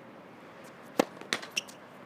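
A tennis racket strikes a ball hard on a serve.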